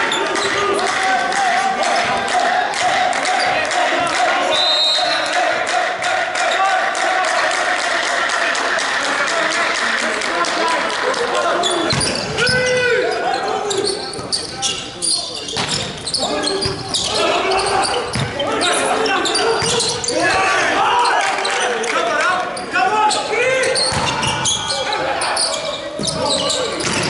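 Men shout and call out to each other on the court.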